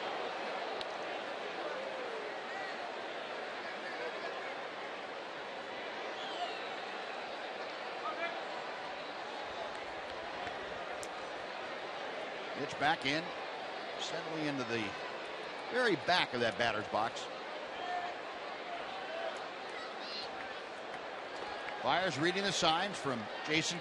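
A large crowd murmurs steadily in a stadium.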